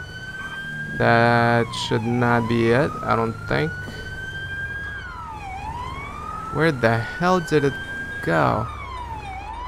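A vehicle's horn blasts in short bursts.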